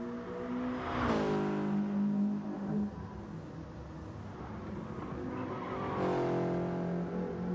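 A racing car engine roars loudly as the car passes close by.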